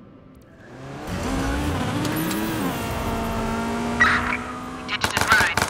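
A car engine revs up and roars.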